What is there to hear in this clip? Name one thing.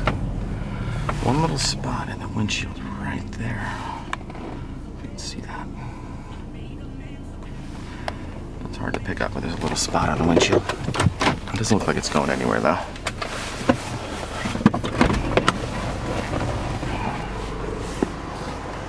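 An SUV drives along a road, heard from inside the cabin.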